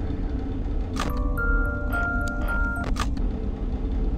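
A music box plays a short tinkling tune.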